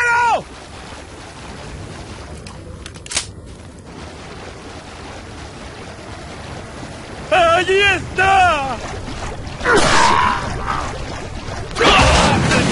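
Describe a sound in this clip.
A man wades through water with splashing steps.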